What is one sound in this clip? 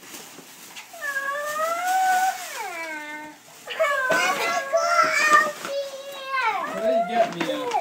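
A young girl squeals and exclaims excitedly.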